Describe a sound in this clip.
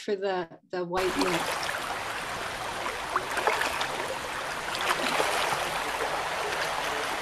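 Water rushes and splashes over stones in a shallow stream.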